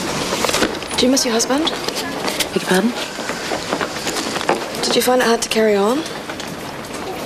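A young woman asks questions softly.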